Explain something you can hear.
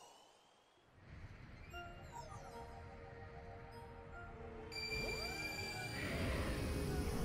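A deep, ominous rumble swells louder.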